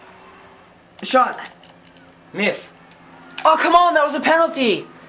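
A teenage boy shouts excitedly.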